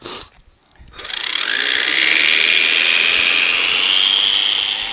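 Small electric motors whine loudly with rising pitch as propellers spin up.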